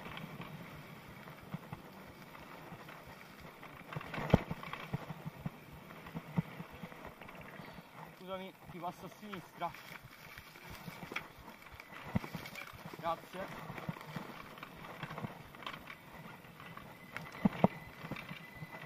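A bike's frame and chain rattle and clatter over bumps.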